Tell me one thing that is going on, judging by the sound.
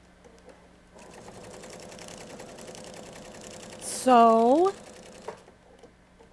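A sewing machine runs with a fast, steady whir.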